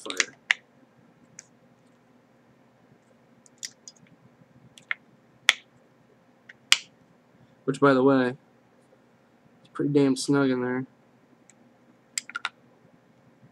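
Small hard objects click and tap together while being handled up close.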